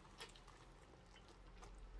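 A man bites into a crusty sandwich and chews.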